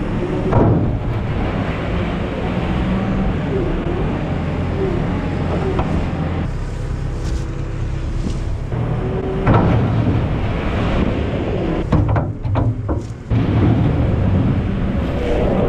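A loader bucket scrapes and drops manure into a trailer.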